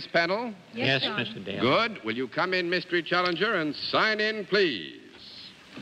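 A middle-aged man speaks into a microphone with animation.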